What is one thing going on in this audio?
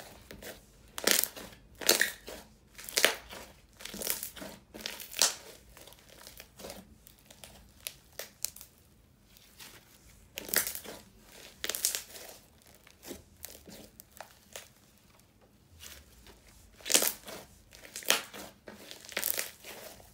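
Sticky slime squelches and crackles as hands squeeze and stretch it up close.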